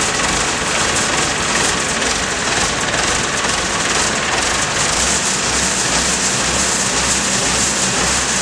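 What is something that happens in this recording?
A diesel generator engine runs with a loud, steady roar.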